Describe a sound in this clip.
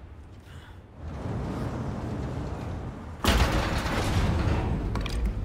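An elevator rumbles as it starts moving.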